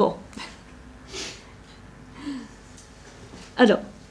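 A middle-aged woman laughs softly.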